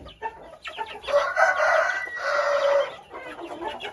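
A hen squawks loudly nearby.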